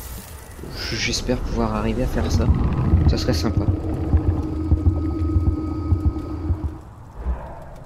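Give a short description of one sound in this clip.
A deep rumbling whoosh swells and fades.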